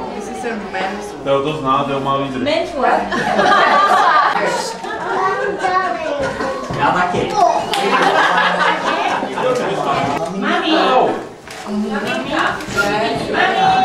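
Several women chat and laugh nearby.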